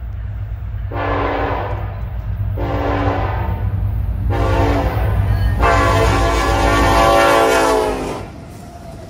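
A train horn blasts loudly several times, the last blast long.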